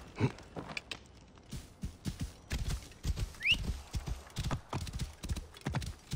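Hooves clop on a dirt path.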